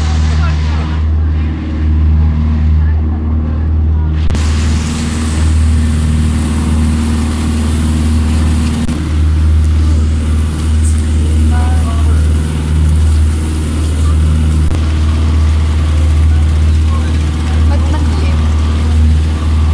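A boat engine drones steadily up close.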